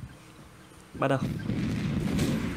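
Game explosions boom and rumble.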